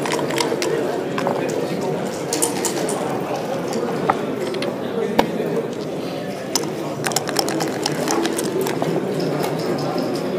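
Dice clatter as they roll across a board.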